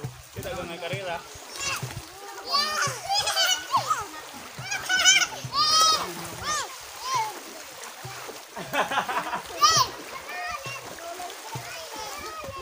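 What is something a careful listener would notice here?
Children shout and squeal playfully nearby, outdoors.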